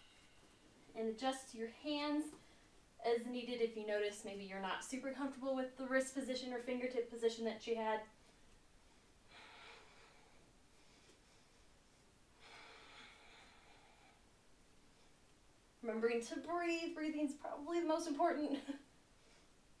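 A woman speaks calmly, giving instructions, close by.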